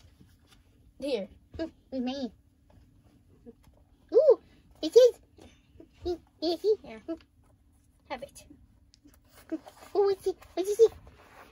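A young boy talks playfully close by.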